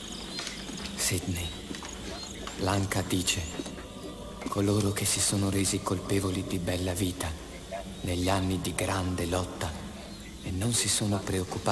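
A middle-aged man speaks calmly through an online call.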